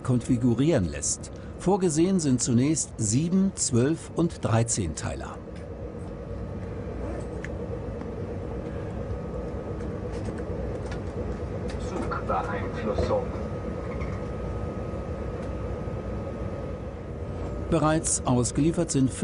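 A train rumbles steadily along the track.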